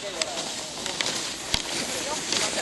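Ski poles click against hard snow.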